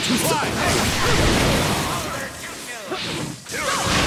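Heavy blows thud and crash.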